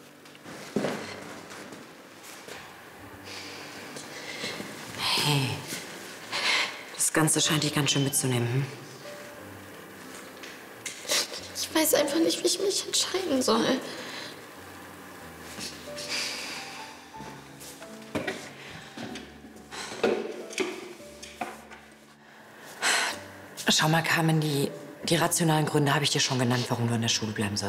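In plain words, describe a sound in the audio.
A young woman speaks with concern, close by.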